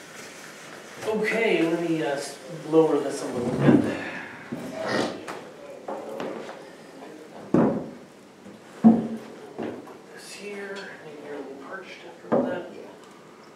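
Plastic buckets knock and clatter as they are stacked.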